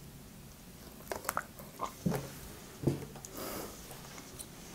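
Juice pours into a glass.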